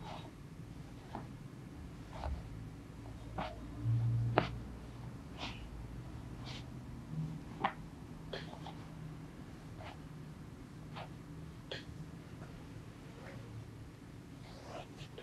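Hands press and rub on a person's back with short soft pops.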